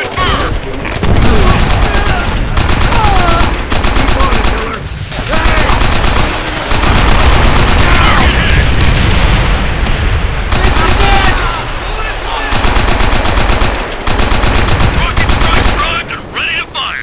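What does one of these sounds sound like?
A heavy machine gun fires long, rapid bursts.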